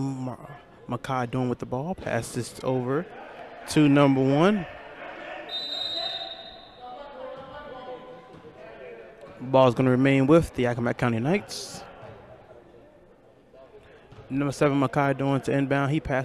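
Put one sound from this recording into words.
Sneakers squeak on a gym floor.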